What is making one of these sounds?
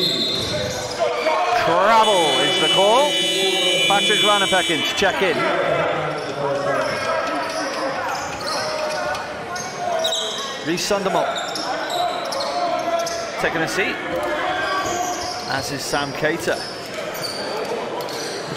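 A crowd chatters and cheers in a large echoing hall.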